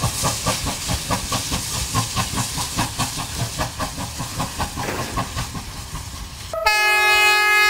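A steam locomotive chugs in rapid, rhythmic puffs.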